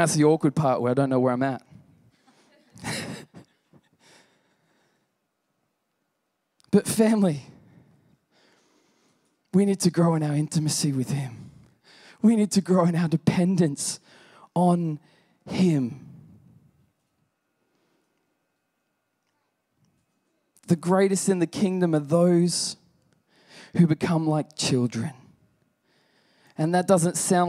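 A man speaks with emphasis into a microphone, with long pauses.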